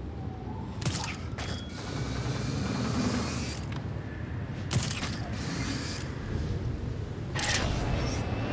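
Wind rushes past during a fall through the air.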